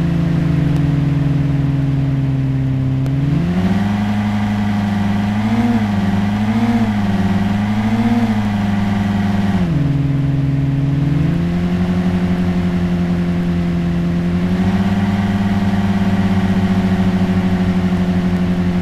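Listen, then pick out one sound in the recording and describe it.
A sports car engine hums steadily and rises and falls in pitch as it speeds up and slows down.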